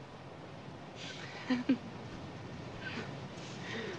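A middle-aged woman laughs softly.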